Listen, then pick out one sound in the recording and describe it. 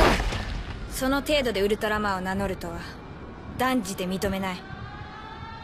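A young woman speaks calmly and seriously.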